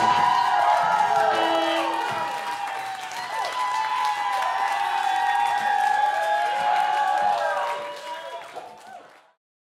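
A rock band plays loudly with electric guitars and drums, then fades out.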